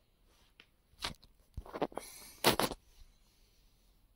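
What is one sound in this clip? A paper bag crinkles as it is handled.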